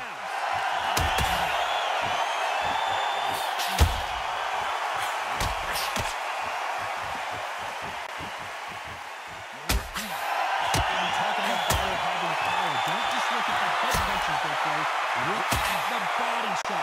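Punches land with thuds on a boxer's body.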